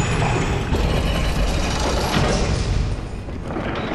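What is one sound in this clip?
An iron lift rumbles and clanks as it moves.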